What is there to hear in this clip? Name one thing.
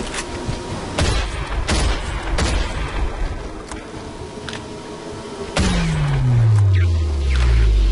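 A shotgun fires loud single blasts that echo.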